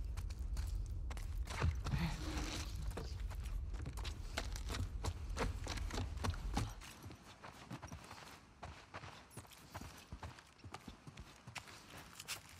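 Footsteps tread steadily on hard floors and wooden stairs.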